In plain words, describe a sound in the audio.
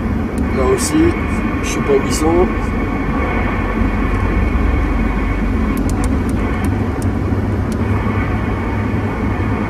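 A CB radio speaker hisses with static.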